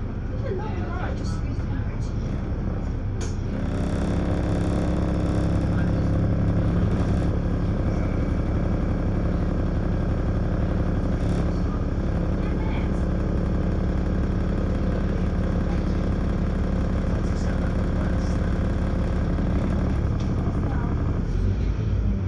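Cars drive past close by.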